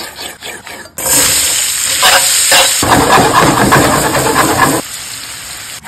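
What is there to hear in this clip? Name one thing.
Vegetables sizzle and crackle in a hot pan.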